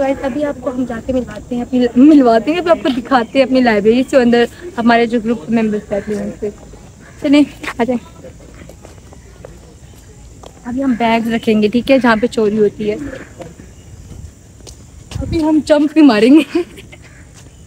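A young woman talks cheerfully and close by.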